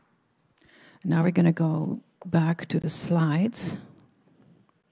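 An older woman speaks calmly into a microphone over a loudspeaker.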